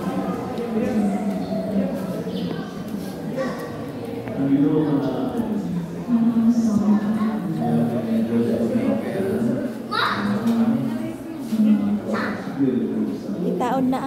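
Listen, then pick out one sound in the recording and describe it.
Footsteps tap on a tiled floor.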